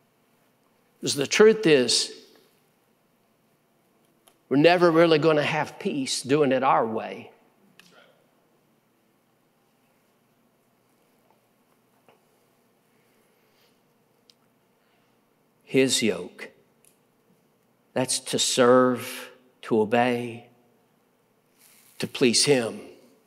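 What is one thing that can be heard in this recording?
A middle-aged man speaks calmly into a microphone, with pauses between phrases.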